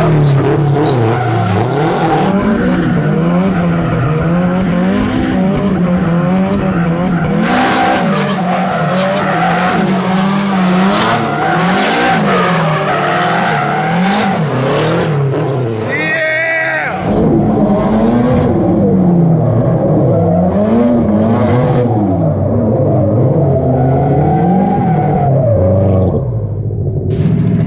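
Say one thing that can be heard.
A car engine roars and revs hard.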